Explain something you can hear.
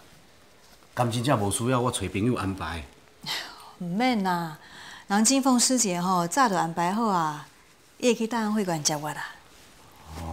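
A middle-aged woman answers calmly nearby.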